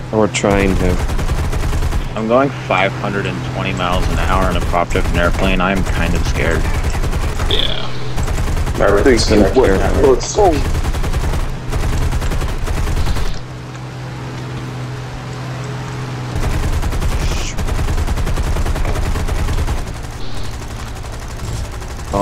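A plane engine drones steadily.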